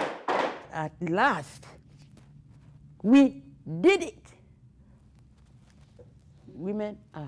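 An elderly woman speaks expressively close by, with pauses.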